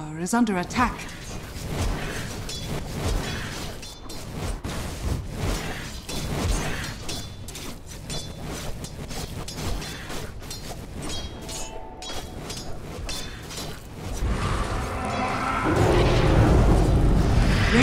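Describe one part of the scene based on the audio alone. Weapons clash and magic effects crackle in a game battle.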